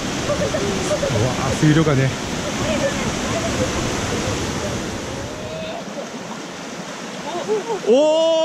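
A mountain stream rushes over rocks.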